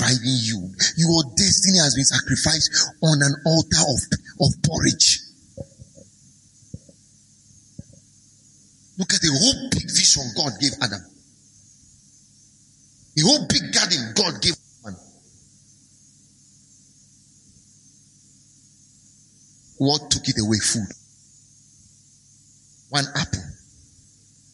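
A man speaks with emphasis through a microphone, in short bursts with pauses.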